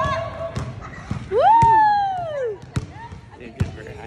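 A little girl squeals with delight.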